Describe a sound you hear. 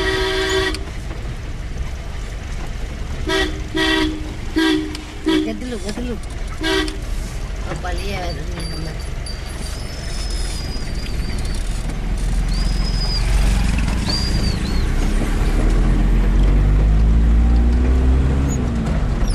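A vehicle engine hums steadily and revs up as it drives off.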